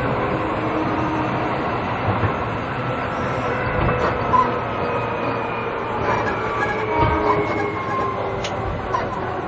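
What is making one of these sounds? An electric train idles with a steady hum.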